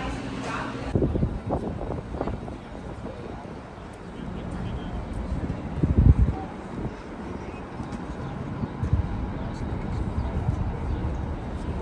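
Traffic hums along a nearby street outdoors.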